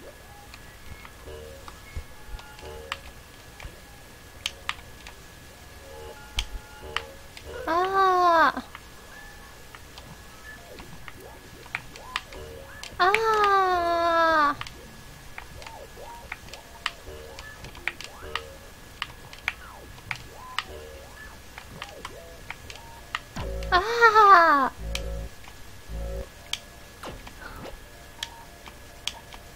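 Light electronic clicks and taps sound throughout.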